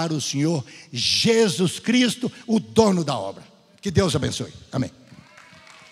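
An elderly man speaks calmly through a microphone in a large echoing hall.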